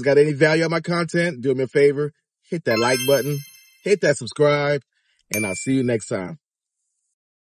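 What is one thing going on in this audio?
A middle-aged man talks with animation, close up.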